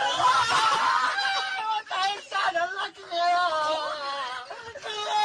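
A man wails and cries out in fear close by.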